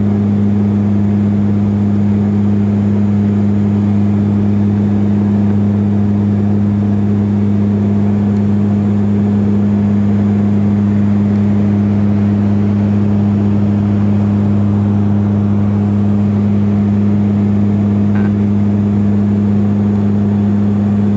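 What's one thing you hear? A propeller engine drones loudly and steadily, heard from inside the cabin.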